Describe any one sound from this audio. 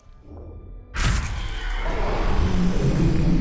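A blade whooshes through the air.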